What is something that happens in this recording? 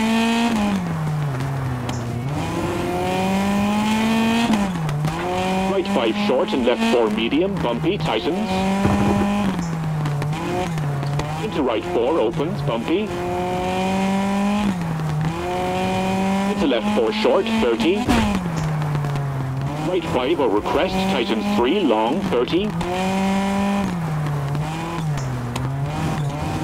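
A rally car engine revs hard, rising and falling as the gears shift.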